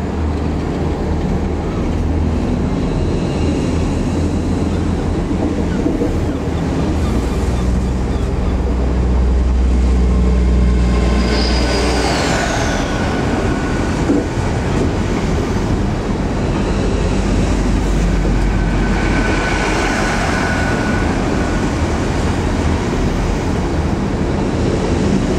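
A train rushes past close by with a steady roar.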